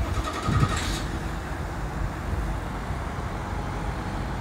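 A truck exhaust rumbles deeply at idle.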